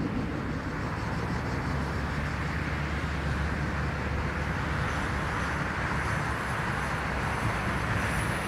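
A jet airliner roars loudly as it speeds down a runway for takeoff.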